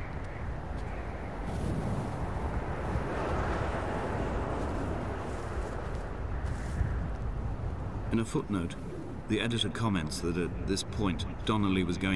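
Wind blows steadily across an open hillside.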